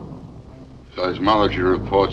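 A man speaks calmly into a telephone.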